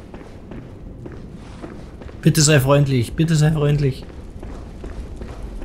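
Footsteps walk slowly on a stone floor.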